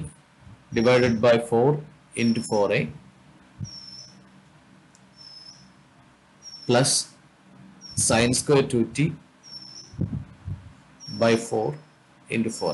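A man speaks calmly into a close microphone, pausing often.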